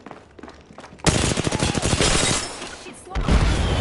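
A gun fires a rapid burst of loud shots.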